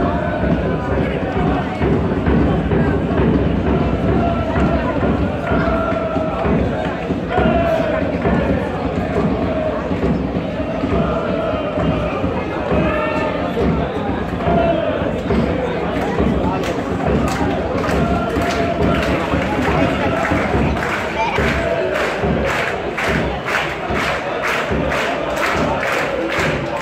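A crowd of fans chants and sings loudly in an open stadium.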